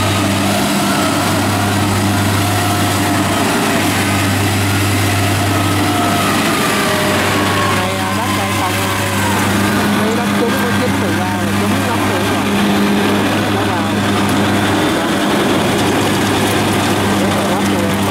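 A combine harvester's diesel engine rumbles steadily close by.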